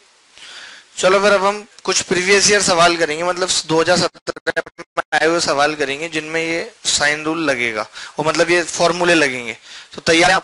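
A man speaks clearly into a close microphone, explaining with animation.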